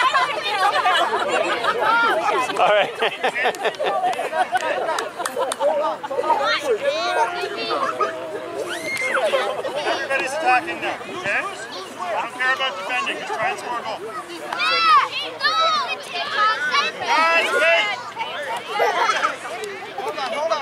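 Young children chatter and shout excitedly nearby, outdoors.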